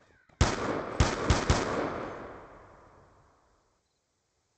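A rifle fires a rapid burst of shots that ring out and fade.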